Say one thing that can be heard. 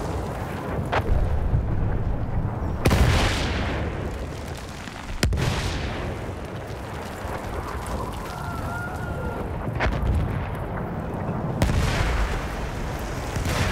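Shells explode nearby with deep, rumbling booms.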